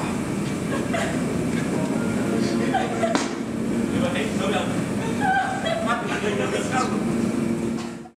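A group of men and women laugh and shout playfully close by.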